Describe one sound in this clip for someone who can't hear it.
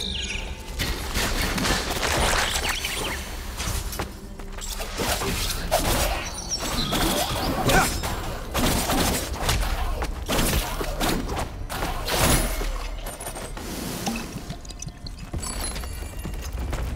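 Blades swish and strike with sharp metallic hits during a fight.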